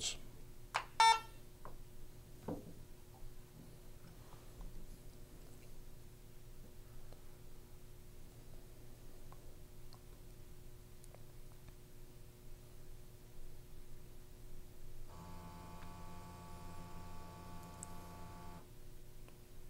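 An electronic device beeps.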